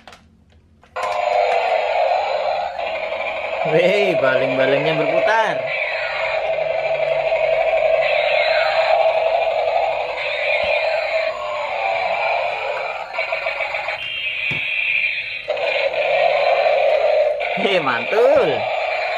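A small toy motor whirs as the toy helicopter rolls across a hard floor.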